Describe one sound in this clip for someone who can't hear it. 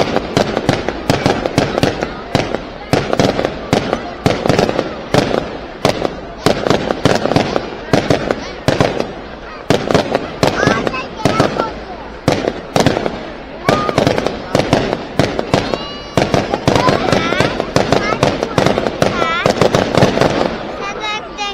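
Fireworks bang and crackle rapidly overhead.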